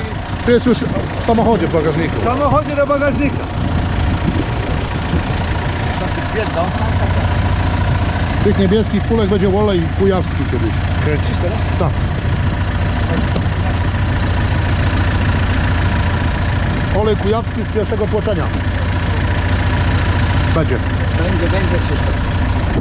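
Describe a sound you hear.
A man speaks nearby, calmly.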